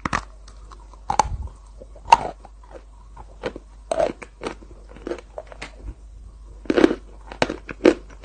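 A young woman licks and sucks her fingers close up.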